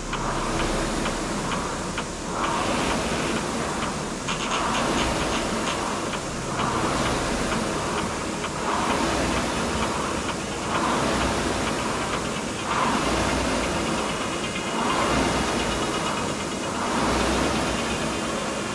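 A person breathes hard in a slow, steady rhythm.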